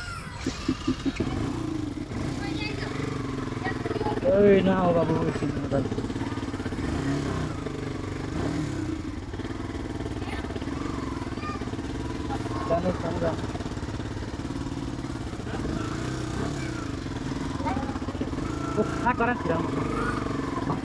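A motorcycle engine runs with a steady low putter.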